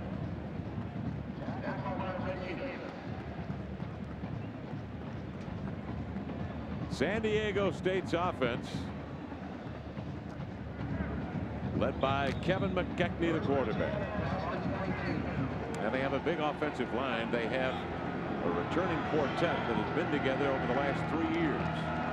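A large stadium crowd murmurs and cheers outdoors.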